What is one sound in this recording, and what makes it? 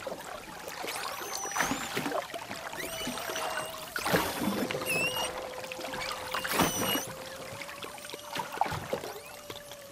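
Whales and dolphins click underwater.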